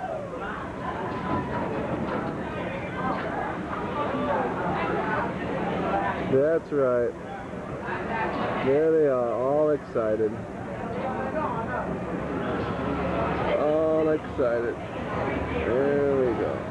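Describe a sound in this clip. A crowd of young people chatter and shout.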